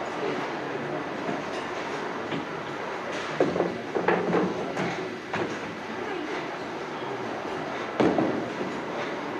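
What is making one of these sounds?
Bowling balls roll down wooden lanes with a low rumble.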